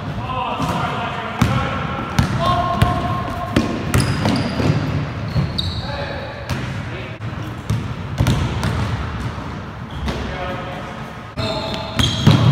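Men shout and call out to each other during a game.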